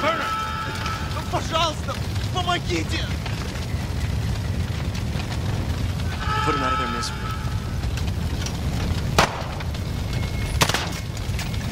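Fires roar and crackle steadily.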